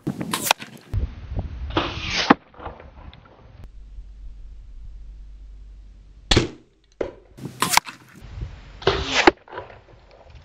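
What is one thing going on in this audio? An arrow whooshes past and strikes a target with a thud.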